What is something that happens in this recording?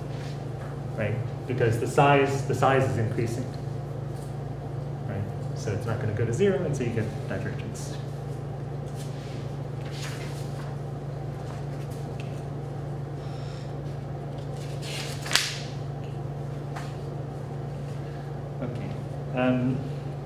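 A man speaks calmly through a face mask, close by.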